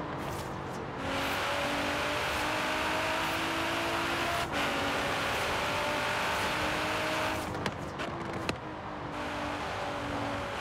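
Tyres hiss on asphalt at speed.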